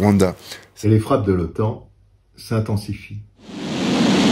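An elderly man talks with animation.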